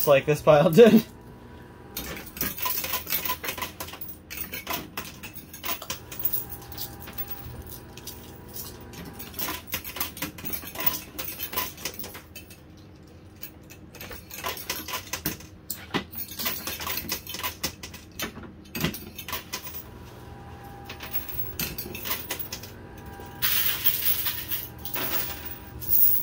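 Metal coins clink and clatter as they drop onto a pusher machine's tray.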